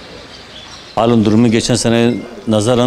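An older man speaks close to a microphone.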